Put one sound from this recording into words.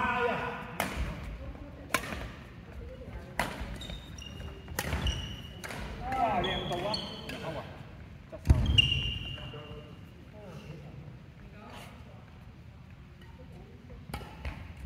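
Rackets strike a shuttlecock in sharp pops, echoing in a large hall.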